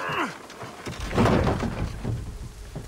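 A wooden cart tips over and crashes to the ground.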